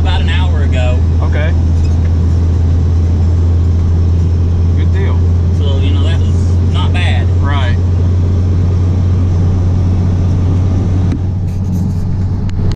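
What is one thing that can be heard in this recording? A car engine hums steadily with a low drone while driving.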